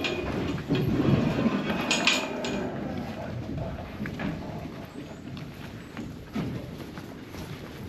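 Cattle hooves squelch and shuffle through deep mud.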